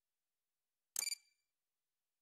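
A button clicks once, sharply.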